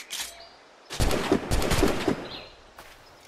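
Muskets fire in a rapid volley of loud shots.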